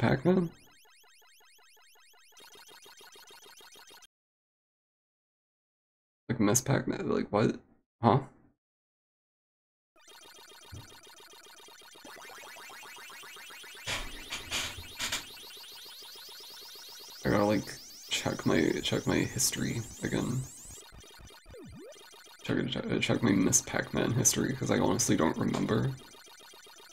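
A person talks with animation through a microphone.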